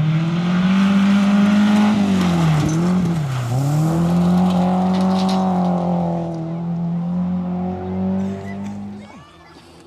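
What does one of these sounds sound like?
A rally car engine roars loudly close by, then fades into the distance.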